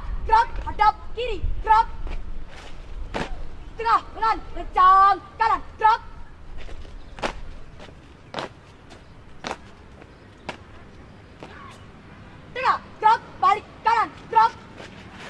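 A group of young women chant loudly in unison outdoors.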